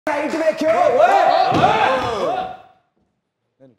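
A man shouts loudly with animation.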